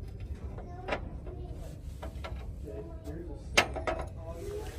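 China clinks softly as a saucer is handled.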